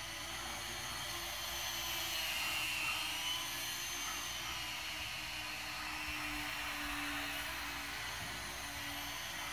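Small quadcopter drones buzz with a high whine, echoing in a large hall.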